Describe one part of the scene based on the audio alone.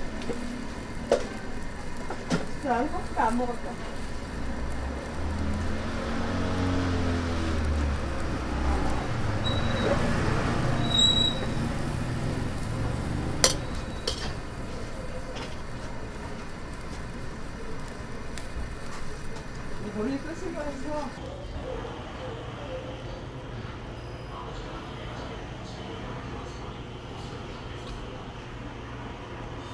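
Soup bubbles and simmers in a pot.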